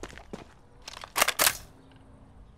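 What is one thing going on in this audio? A rifle is drawn with sharp metallic clicks.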